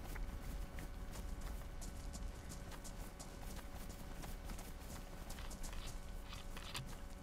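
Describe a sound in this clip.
Footsteps crunch through grass and gravel.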